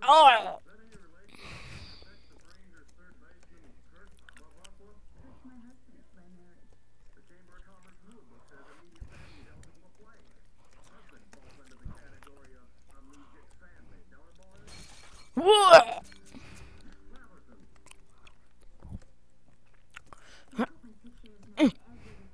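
A boy speaks quietly into a headset microphone.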